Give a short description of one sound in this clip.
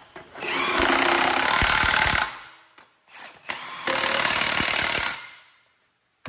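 A cordless impact wrench rattles loudly in short bursts.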